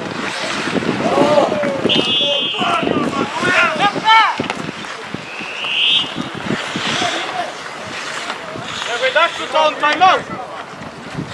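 Young men shout to each other across an open outdoor rink.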